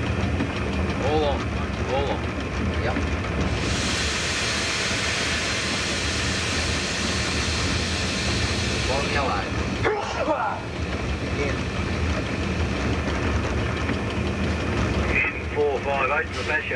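Train wheels clatter and squeal on curved rails.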